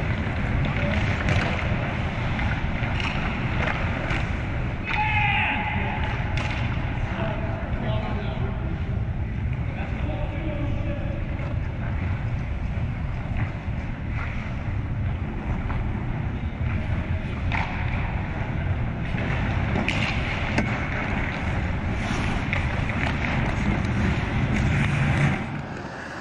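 Skate blades scrape across ice in a large echoing arena.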